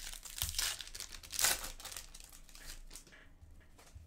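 Foil wrapping rustles and tears as hands open a pack.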